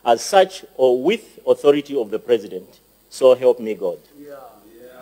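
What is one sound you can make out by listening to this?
A man reads out solemnly through a microphone in an echoing hall.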